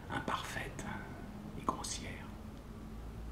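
A middle-aged man speaks briefly and warmly close to a microphone.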